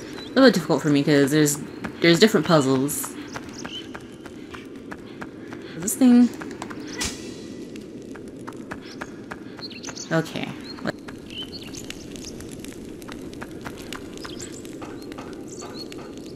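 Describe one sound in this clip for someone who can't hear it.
Quick footsteps patter on a hard stone floor.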